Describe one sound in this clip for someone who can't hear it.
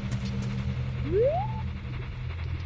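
A short rising electronic tone chimes.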